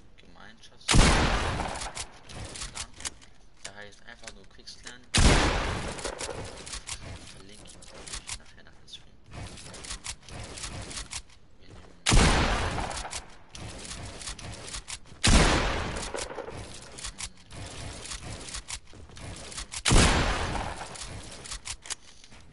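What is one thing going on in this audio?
Loud booming crashes burst out every few seconds and quickly fade.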